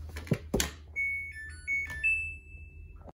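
A washing machine plays a series of short electronic beeps.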